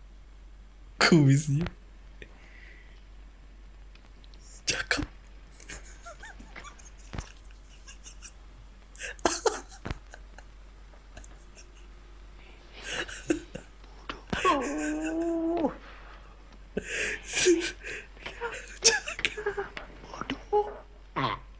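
A man laughs loudly and heartily close to a microphone.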